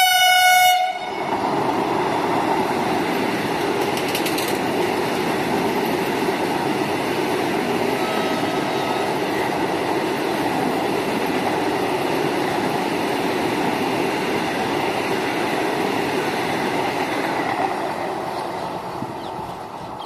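A fast train rushes past with a steady roar of wheels on rails.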